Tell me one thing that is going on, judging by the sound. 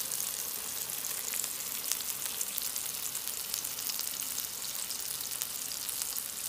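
Meat patties sizzle and crackle steadily in hot oil.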